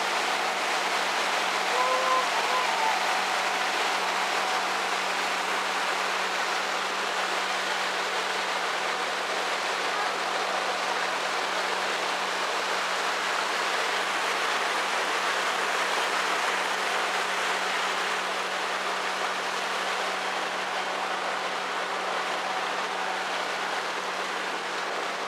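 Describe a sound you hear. Water splashes and churns in a boat's wake.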